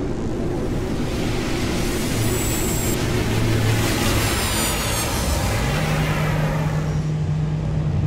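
Spaceship thrusters whoosh and hiss loudly as the ship sets down, then fade.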